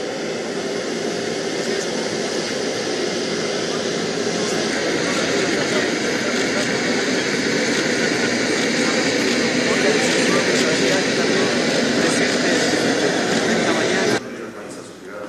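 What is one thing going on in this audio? A crowd chatters noisily close by.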